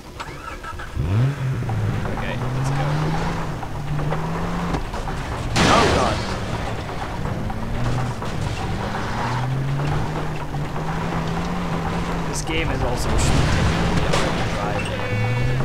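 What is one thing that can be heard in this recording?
An engine starts and revs up and down as a vehicle drives.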